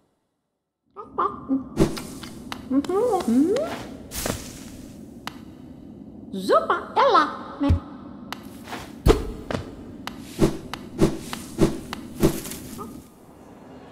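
Light footsteps tap in a steady rhythm.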